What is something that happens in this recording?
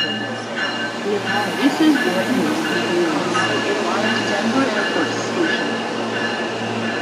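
A train's wheels squeal and clatter on the rails.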